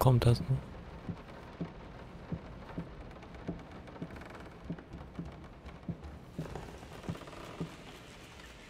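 Footsteps tread slowly on a wooden floor.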